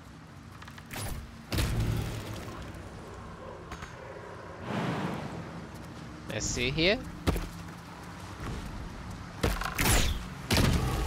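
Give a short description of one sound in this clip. A bow looses arrows with sharp snaps.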